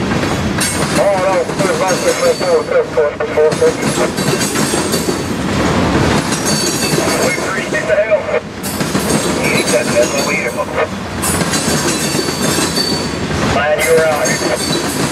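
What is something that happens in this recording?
Train wheels squeal on the rails.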